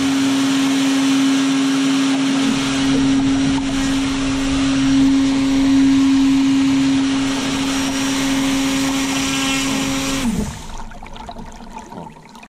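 Water splashes and laps around a kayak.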